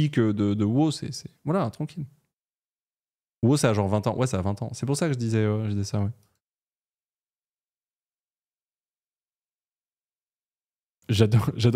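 A young man talks with animation, close to a microphone, with pauses.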